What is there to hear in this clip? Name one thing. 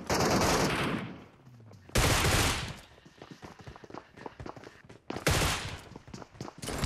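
Gunfire rattles in short rapid bursts.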